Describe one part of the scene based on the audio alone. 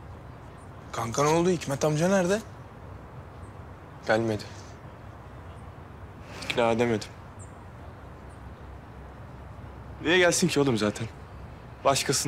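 A young man speaks calmly, close by.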